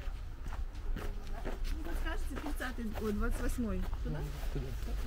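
Two women chat briefly as they pass nearby.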